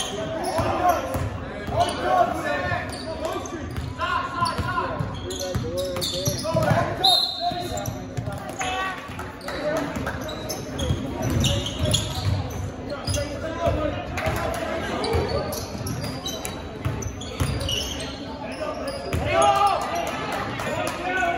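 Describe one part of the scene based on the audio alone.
Spectators talk and shout in a large echoing gym.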